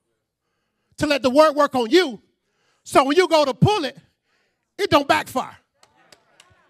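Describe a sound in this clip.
A man speaks with animation into a microphone, heard through a loudspeaker, pausing between phrases.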